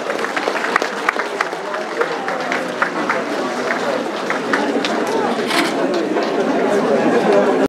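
A small group of musicians plays string and brass instruments.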